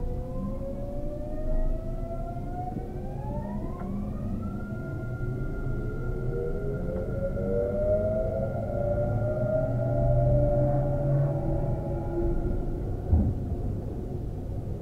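An electric train's motors hum and whine, rising steadily in pitch.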